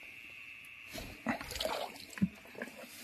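Water splashes as a stick stirs a pond.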